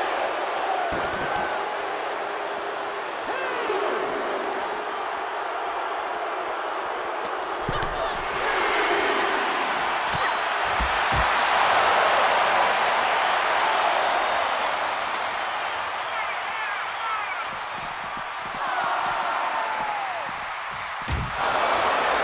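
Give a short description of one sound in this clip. Heavy blows and body slams thud loudly.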